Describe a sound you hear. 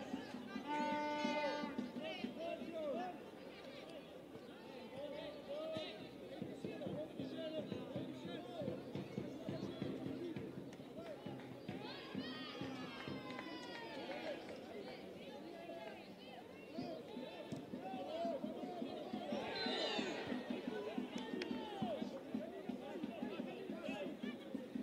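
A crowd of spectators chatters and calls out outdoors throughout.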